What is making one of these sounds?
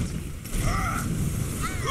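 A video game gun fires in rapid shots.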